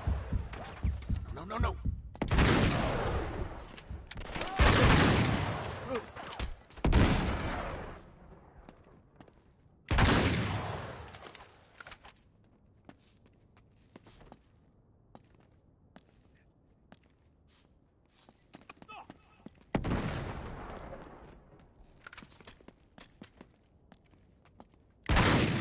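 Gunshots fire in loud bursts that boom and echo away.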